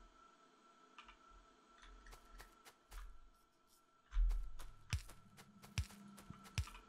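Building pieces are placed with short, soft clicks.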